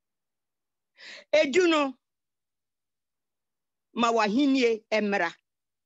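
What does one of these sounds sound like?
An elderly woman speaks close to a phone microphone in short phrases.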